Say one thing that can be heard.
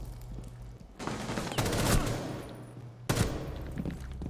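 A rifle fires quick bursts of shots.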